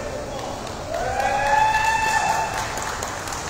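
A young player shouts loudly.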